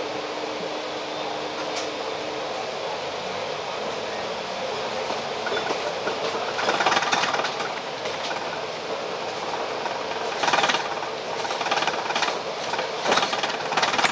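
City traffic hums steadily in the background.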